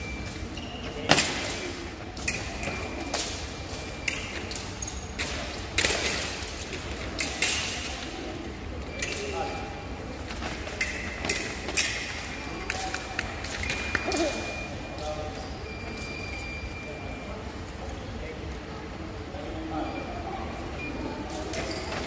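Fencing blades clash and scrape together.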